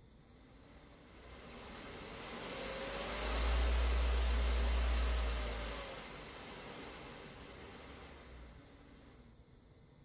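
An electric motor whirs up to speed, hums steadily and then winds down.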